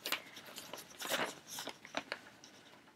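A newspaper rustles and crinkles close by.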